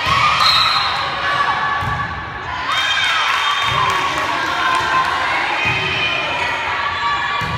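A crowd of young players and spectators chatters and calls out in a large echoing gym.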